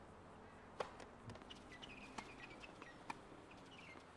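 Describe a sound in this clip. Footsteps patter quickly across the court.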